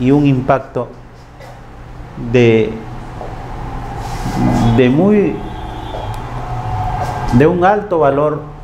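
A man speaks calmly, as if giving a talk.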